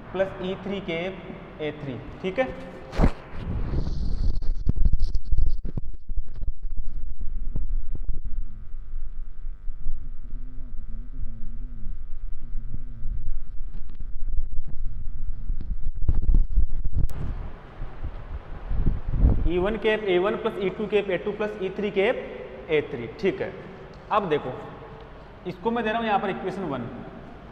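A young man talks calmly, explaining as he lectures.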